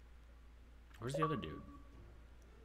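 A short electronic notification chime sounds.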